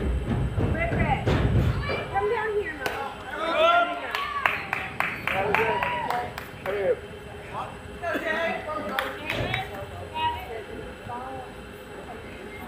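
Young players shout and cheer outdoors.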